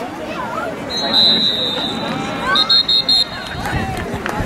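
A referee's whistle blows two sharp blasts.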